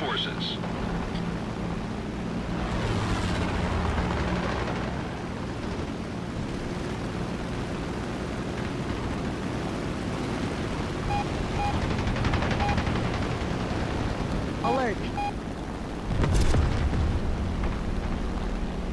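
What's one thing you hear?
The radial engine of a propeller fighter plane drones in flight.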